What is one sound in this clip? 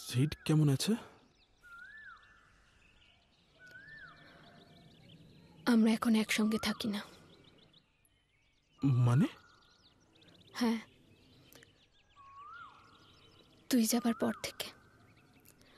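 A man speaks quietly and close by.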